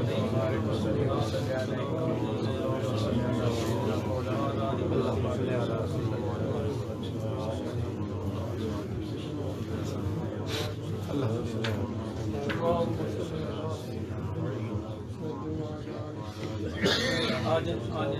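A middle-aged man speaks calmly and steadily, close by.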